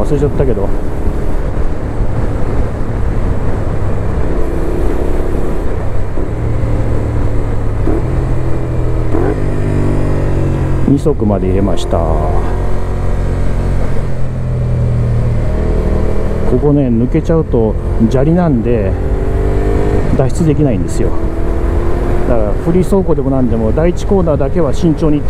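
A motorcycle engine roars up close, its pitch climbing and dropping as it revs and shifts gears.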